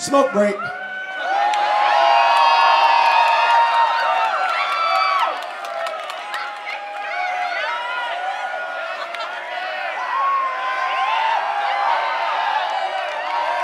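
A large crowd cheers and screams loudly outdoors.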